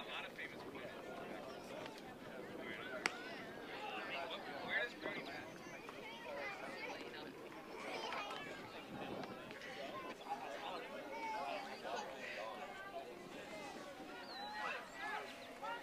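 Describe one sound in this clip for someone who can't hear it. Children shout and call out to each other outdoors across an open field.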